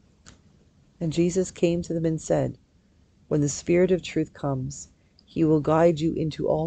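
A middle-aged woman reads aloud calmly into a close microphone.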